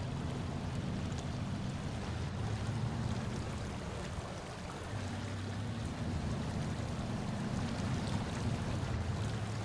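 Truck tyres crunch over wet rocks.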